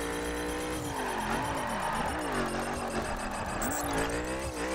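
Tyres screech as a car slides through a tight bend.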